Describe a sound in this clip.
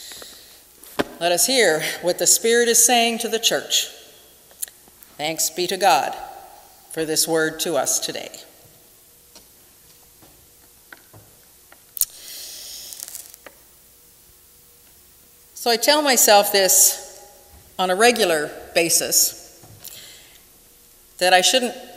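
A middle-aged woman speaks calmly through a microphone, in pauses, in an echoing room.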